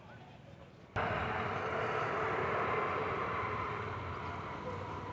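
A motorbike engine idles nearby.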